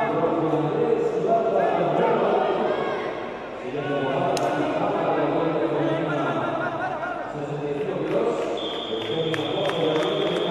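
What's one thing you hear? Wrestlers thud and scuff against a mat.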